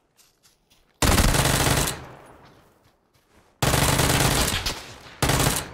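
A rifle fires loud rapid bursts close by.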